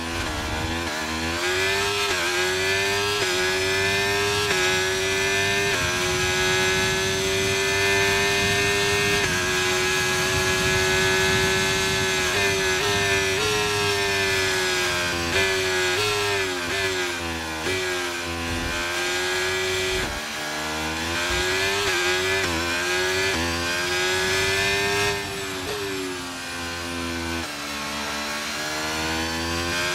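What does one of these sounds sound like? A racing car engine screams at high revs, shifting up through the gears and dropping down into corners.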